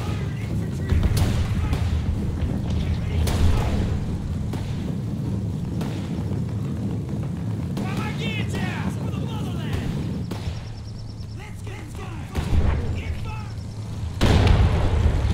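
Heavy gunfire booms now and then.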